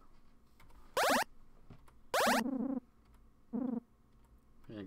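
A short electronic jingle plays.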